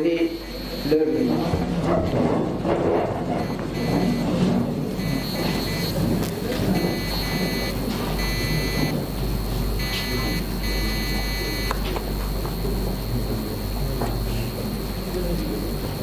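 A large crowd murmurs and stirs in a hall.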